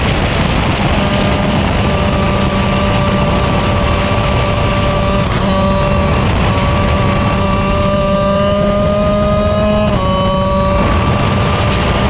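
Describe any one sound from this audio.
Other kart engines whine nearby.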